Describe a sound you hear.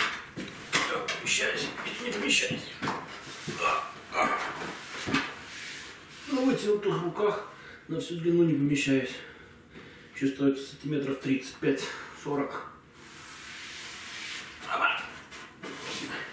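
Wooden boards knock and creak as a man climbs onto a bench.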